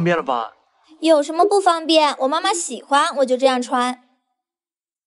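A young woman answers in a puzzled tone, close by.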